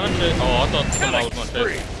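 A magical whoosh bursts out.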